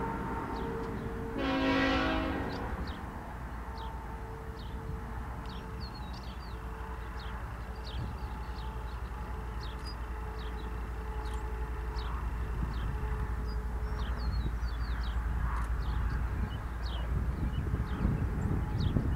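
Wind blows against the microphone outdoors.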